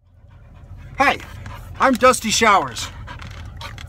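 A man exclaims loudly up close.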